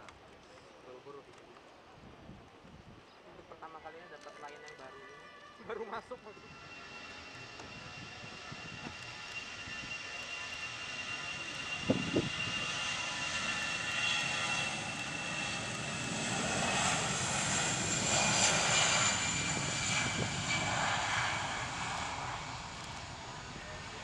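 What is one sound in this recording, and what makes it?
A jet airliner's engines whine and roar, steadily growing louder.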